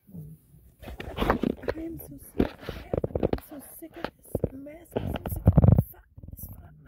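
A phone microphone rubs and bumps loudly as it is handled.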